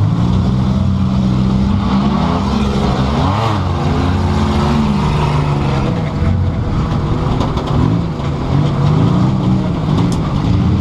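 A race car engine roars loudly, revving up and down as it speeds around a dirt track.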